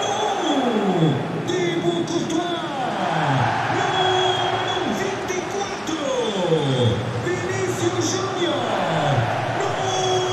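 A large crowd cheers in a stadium.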